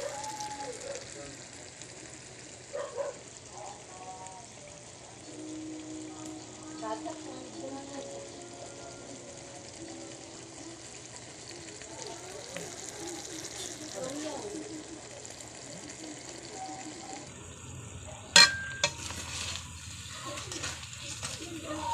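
A thick sauce simmers and bubbles softly in a pan.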